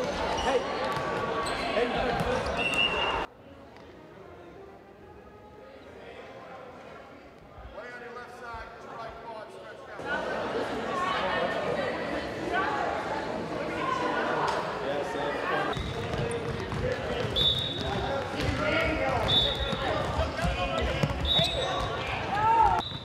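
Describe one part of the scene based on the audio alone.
Young people chatter and call out in a large echoing hall.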